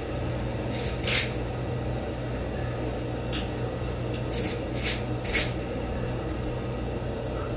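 A spray bottle hisses in short bursts.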